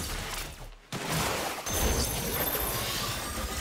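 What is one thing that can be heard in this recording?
A deep magical blast bursts with a rushing whoosh.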